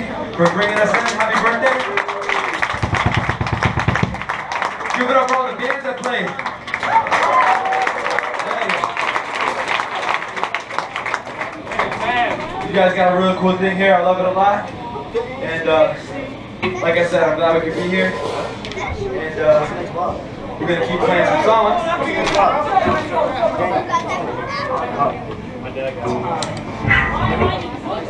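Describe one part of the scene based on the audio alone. A hardcore punk band plays loudly on a live stage.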